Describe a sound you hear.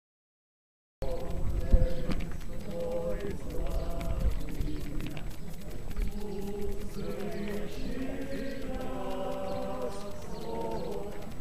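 Several men talk nearby as they walk outdoors.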